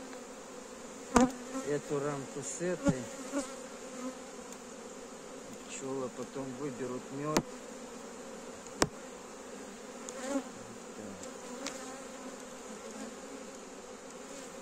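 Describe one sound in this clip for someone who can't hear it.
Bees buzz steadily all around.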